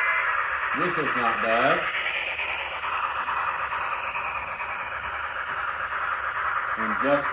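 A small model train whirs steadily along its track.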